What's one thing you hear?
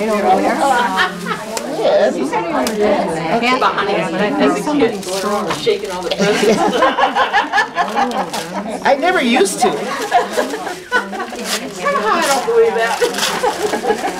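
Wrapping paper rustles and tears as an elderly woman unwraps a gift.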